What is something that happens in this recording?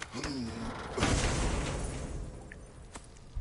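A heavy chest lid creaks open with a rush of crackling embers.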